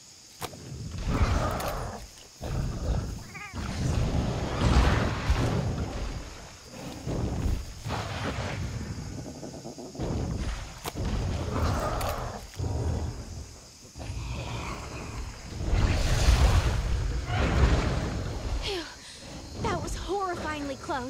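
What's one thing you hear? A large monster roars and stomps heavily nearby.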